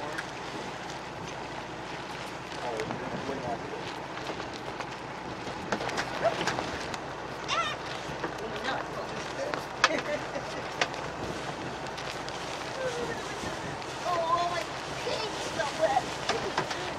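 Water splashes and rushes against a sailboat's hull.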